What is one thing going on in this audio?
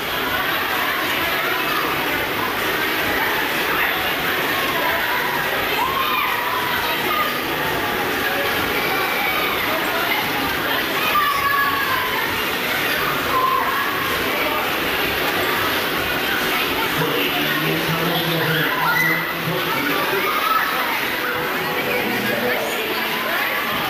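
A fairground ride rumbles and whooshes along its track.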